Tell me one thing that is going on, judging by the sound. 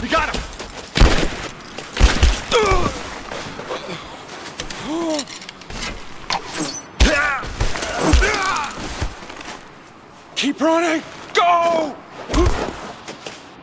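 Loud, heavy blows thud.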